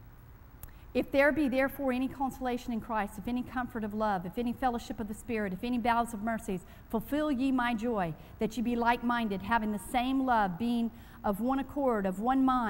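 A woman speaks calmly into a microphone in a large echoing room.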